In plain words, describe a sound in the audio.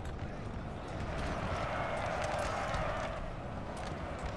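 A large crowd of soldiers shouts and clashes in battle.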